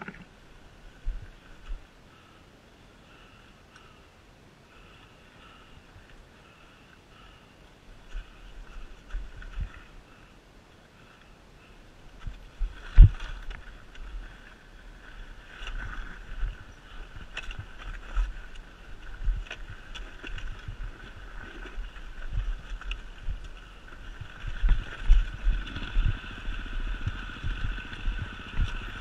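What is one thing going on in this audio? A dirt bike engine drones nearby.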